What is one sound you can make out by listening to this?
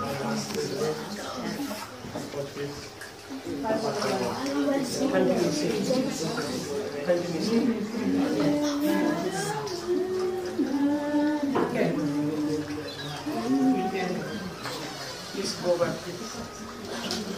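A man sings a slow hymn.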